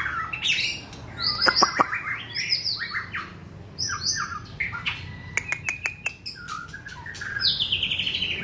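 A caged songbird sings loud, varied whistling phrases close by.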